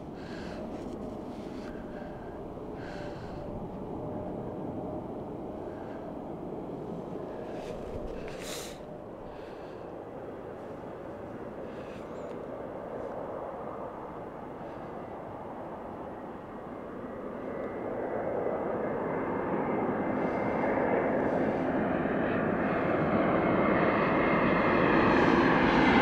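A jet airliner's engines roar steadily as it takes off and climbs, growing louder toward the end.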